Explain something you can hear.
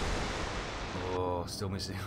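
Shells crash into the sea with loud splashes.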